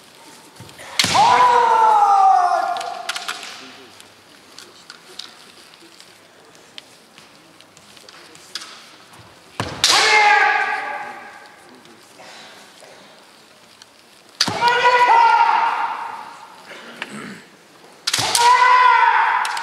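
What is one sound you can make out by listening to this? Kendo fighters give long drawn-out shouts that echo through a large hall.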